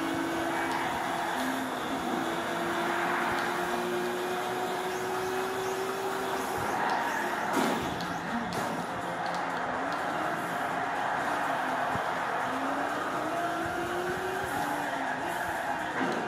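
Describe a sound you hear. A racing car's engine whines, rising and falling as it shifts gears.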